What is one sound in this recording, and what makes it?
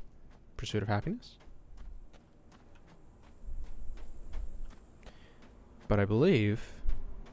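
A young man speaks into a close microphone in short, lively bursts.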